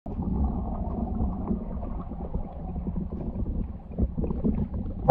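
Water rumbles in a low, steady muffled wash.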